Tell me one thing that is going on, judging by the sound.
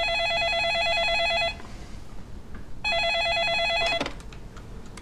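A desk telephone rings loudly in short bursts.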